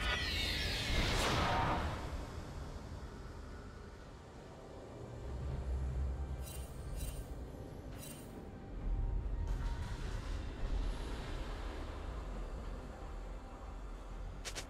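Fantasy game sound effects whoosh and clash.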